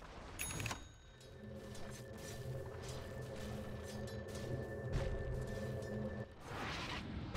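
A game character's spell hums steadily while channeling.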